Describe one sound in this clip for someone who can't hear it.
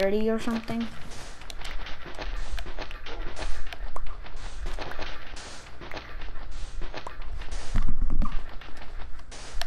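Sand crunches in quick, repeated scrapes as blocks are dug.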